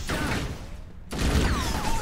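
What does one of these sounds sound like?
A gun fires a bright energy shot.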